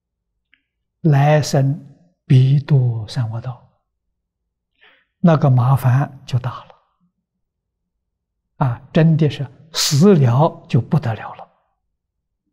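An elderly man speaks calmly and with animation into a close microphone, pausing between phrases.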